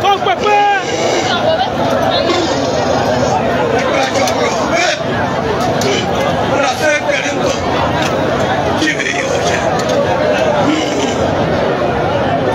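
An elderly man chants into a microphone, heard through loudspeakers.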